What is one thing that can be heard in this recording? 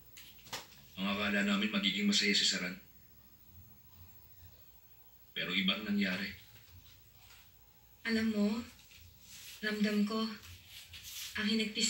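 A woman speaks with feeling through a television loudspeaker.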